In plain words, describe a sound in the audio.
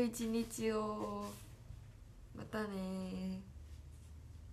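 A young woman speaks brightly and cheerfully close to a microphone.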